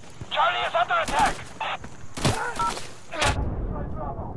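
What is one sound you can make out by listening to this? A man speaks in short bursts through a crackling handheld radio.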